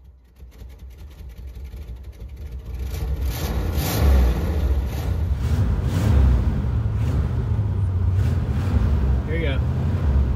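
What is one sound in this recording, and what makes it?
A car engine roars loudly as it revs.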